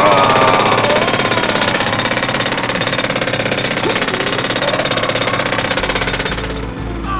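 A toy drill whirs and grinds against stone.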